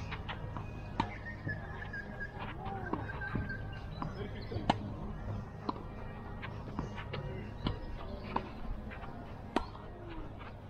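Tennis balls are struck with rackets in a steady rally.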